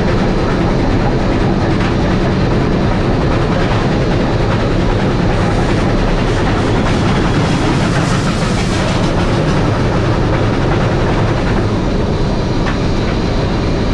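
A fireman's shovel scrapes and clanks against the firebox.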